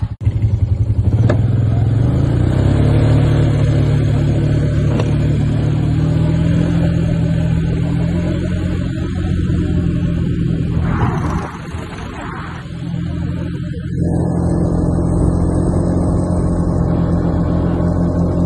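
Wind rushes past loudly outdoors.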